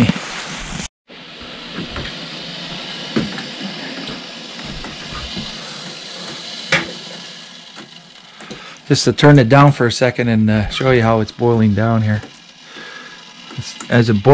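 A gas burner roars steadily under a boiling pot.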